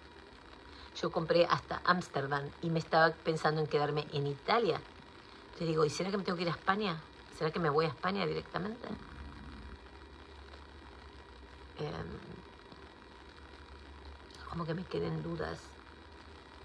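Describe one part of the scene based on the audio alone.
A woman speaks softly and close by, in short bursts.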